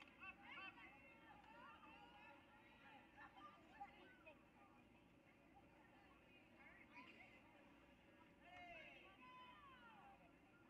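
A crowd of spectators shouts and cheers at a distance outdoors.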